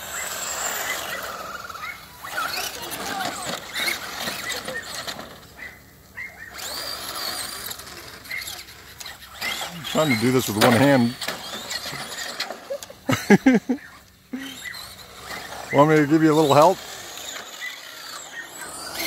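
Small electric motors of toy cars whine and rev as the cars race along.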